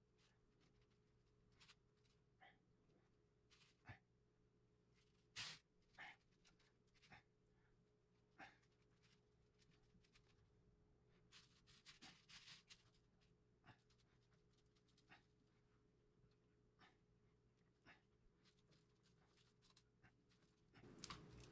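Small wooden parts knock and clack softly as hands adjust a jointed wooden figure.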